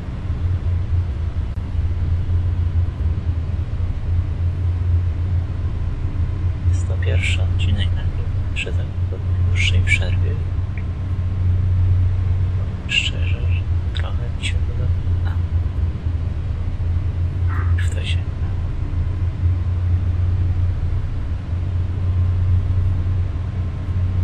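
A train engine hums low and steady.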